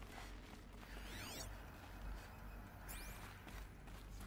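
Shimmering electronic tones sweep up and down in quick bursts.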